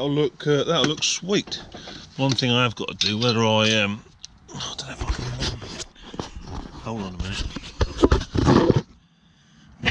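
A man talks casually, close by.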